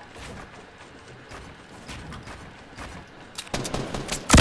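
Footsteps clatter on wooden planks.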